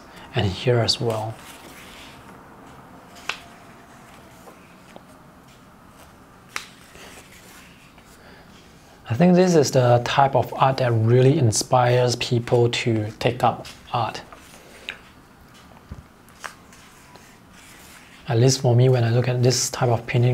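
Pages of a thick book are turned with a soft papery rustle.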